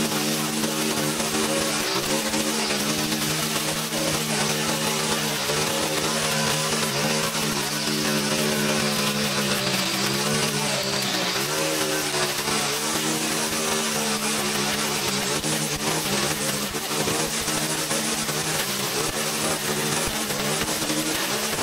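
Weeds and grass whip and tear against a trimmer line.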